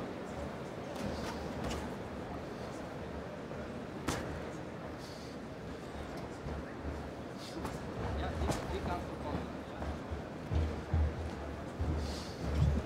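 Boxing gloves thud against a body and gloves.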